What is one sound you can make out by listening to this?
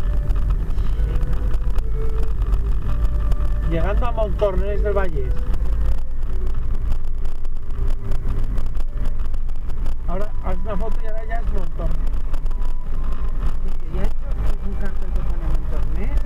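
A car drives along a road with a low, steady rumble from inside the cabin.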